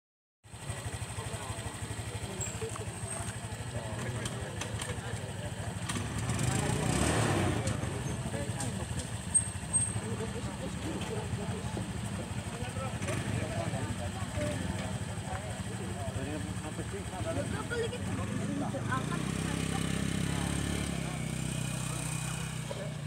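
A crowd of men chatter nearby outdoors.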